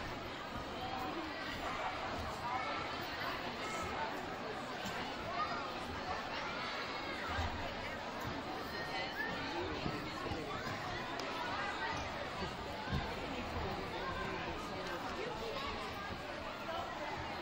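A crowd of children and adults chatter in a large echoing gym.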